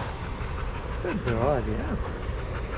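A dog lets out a short, wavering whine.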